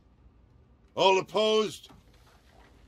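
A man asks a short question.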